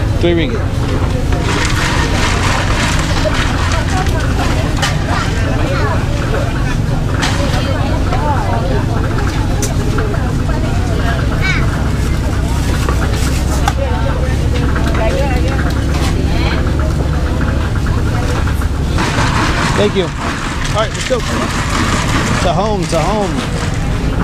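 A busy outdoor market crowd murmurs all around.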